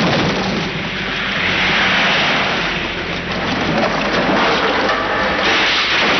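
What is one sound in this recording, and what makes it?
A car crashes through a wooden roadside stall with a loud splintering crash.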